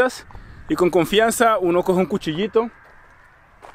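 A young man speaks with animation close to the microphone.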